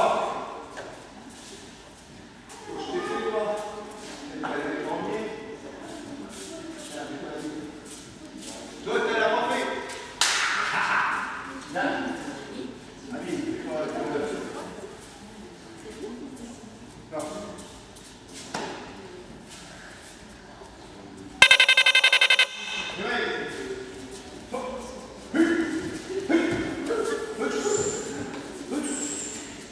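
Children talk and call out nearby in an echoing hall.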